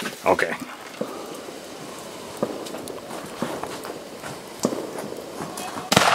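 Fireworks pop and crackle outdoors at a distance.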